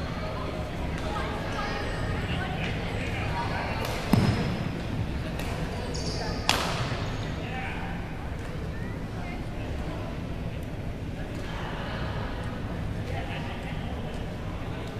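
Voices of many people murmur in a large echoing hall.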